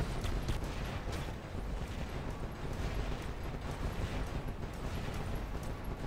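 Game guns fire in rapid bursts.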